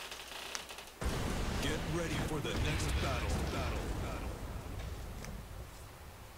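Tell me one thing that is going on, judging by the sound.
A fiery whoosh and roaring music play from a game.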